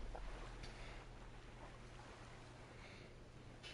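Water swirls and laps gently.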